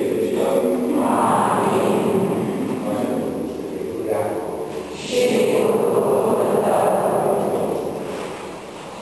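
A man prays aloud through a microphone in an echoing hall.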